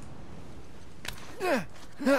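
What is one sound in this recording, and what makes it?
A hand slaps onto rock.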